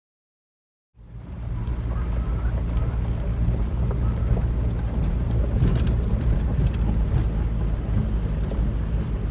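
A small diesel car drives along, heard from inside.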